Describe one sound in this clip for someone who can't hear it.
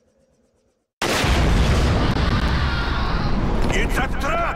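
A huge explosion booms and roars.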